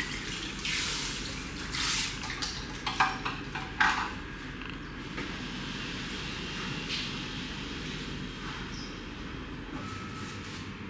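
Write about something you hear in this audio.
Water sprays from a shower head and splashes.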